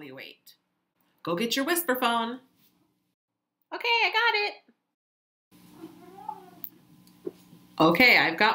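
A woman speaks close up, with lively, exaggerated expression.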